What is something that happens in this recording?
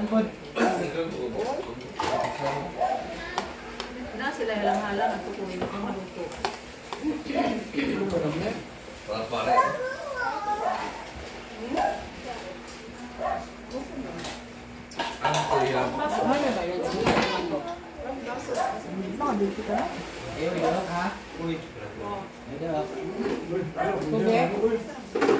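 Men and women chat and talk over one another nearby.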